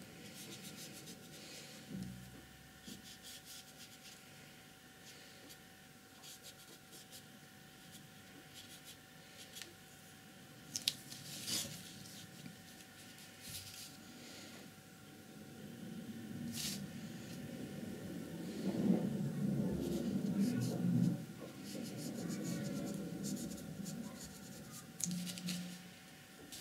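A paintbrush brushes and taps softly on paper.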